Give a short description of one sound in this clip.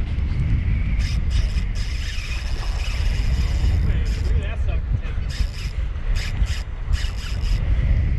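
A fishing reel clicks and whirs as its handle is cranked.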